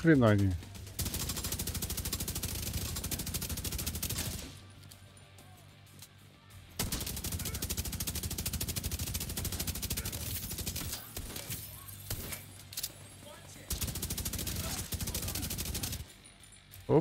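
A rifle fires in rapid, rattling bursts.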